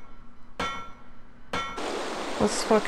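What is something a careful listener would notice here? Metal ladder rungs clang and ring under climbing feet.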